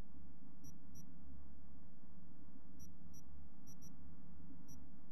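Short soft electronic beeps sound now and then from a game menu.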